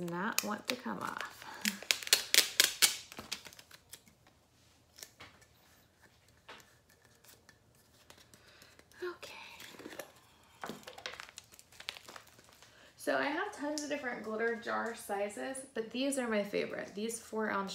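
Small plastic jars and lids click and rattle in a woman's hands.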